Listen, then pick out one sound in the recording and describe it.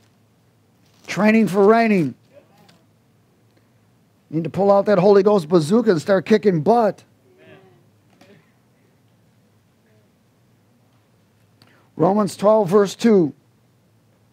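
A middle-aged man speaks calmly through a headset microphone, in short bursts with pauses.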